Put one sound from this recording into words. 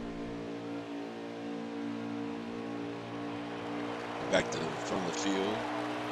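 A racing truck engine roars steadily at high speed.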